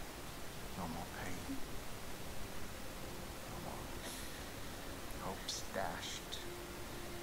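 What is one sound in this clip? A man speaks quietly and gravely, close by.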